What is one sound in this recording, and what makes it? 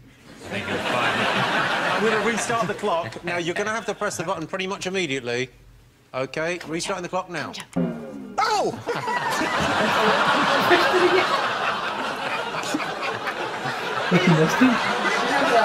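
A studio audience laughs and applauds loudly through a television's speaker.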